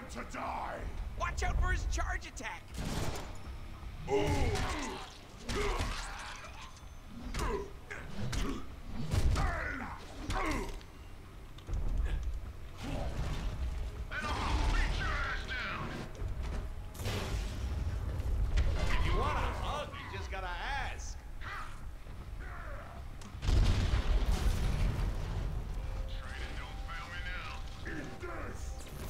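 Blades slash and hit bodies over and over in a fight.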